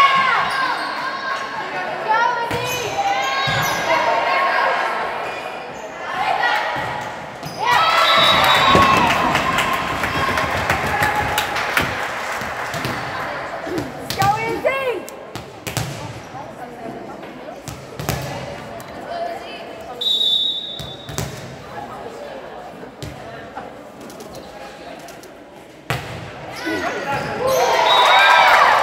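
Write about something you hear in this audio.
Sneakers squeak sharply on an echoing gym floor.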